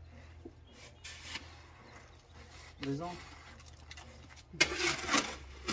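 Concrete blocks scrape and knock as they are stacked.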